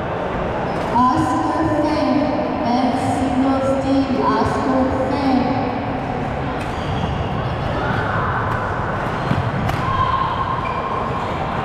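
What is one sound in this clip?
Players' shoes squeak on the floor.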